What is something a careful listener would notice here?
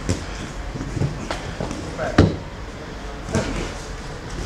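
A man's feet thump as he jumps onto and off a box.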